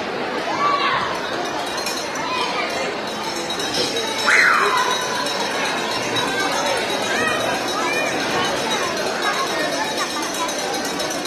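A crowd of children and adults chatters in the background.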